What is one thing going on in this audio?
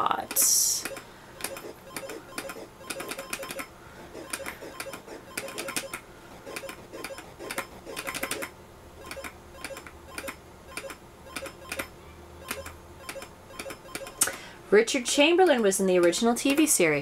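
Short electronic game blips and beeps repeat quickly.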